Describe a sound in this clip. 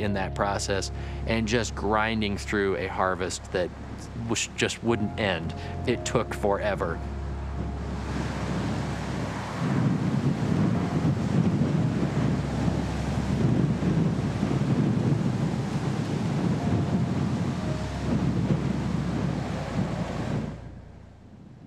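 A combine harvester engine rumbles steadily.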